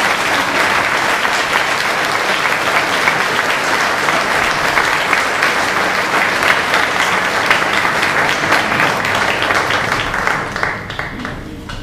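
A mixed choir of men and women sings together in a large, echoing space.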